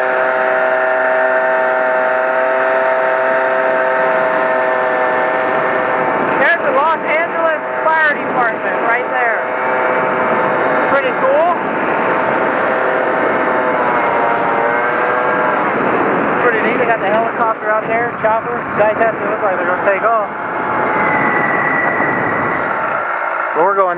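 A motorcycle engine hums steadily and changes pitch as it speeds up and slows down.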